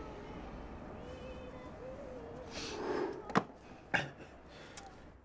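A second young man speaks casually close by.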